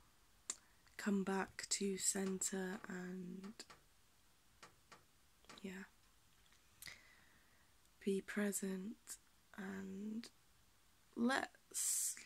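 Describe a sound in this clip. A young woman speaks calmly and close up, in short bursts with pauses.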